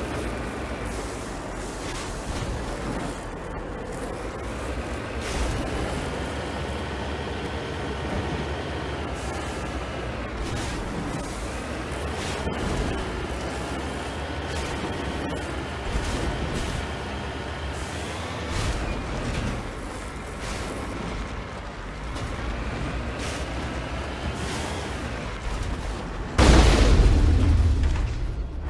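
Heavy wheels thud and bump over rocky ground.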